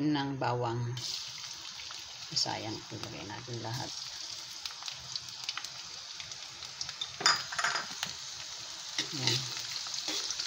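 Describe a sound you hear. Garlic sizzles loudly in hot oil.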